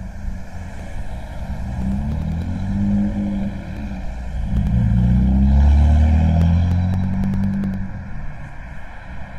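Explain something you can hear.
A car passes close by, its engine rising and then fading.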